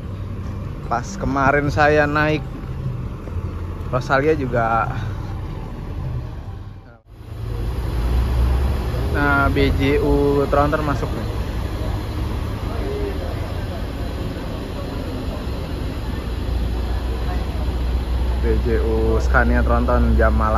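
A bus horn plays loud, warbling musical tunes in short bursts.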